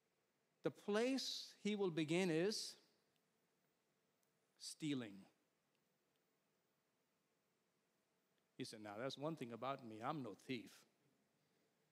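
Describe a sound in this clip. A middle-aged man speaks expressively into a microphone in short bursts, with pauses between.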